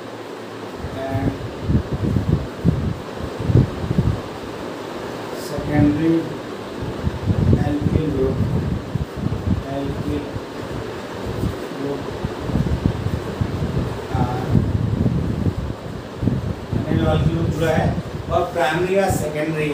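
A middle-aged man speaks steadily, as if teaching, close by.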